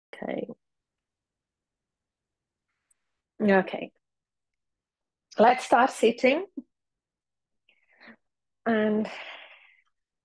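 A woman speaks calmly in short phrases through an online call.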